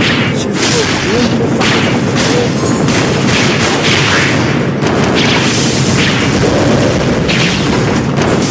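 Swords slash and clang in quick bursts during a fight.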